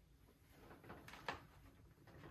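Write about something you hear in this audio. Small plastic jars knock on a table.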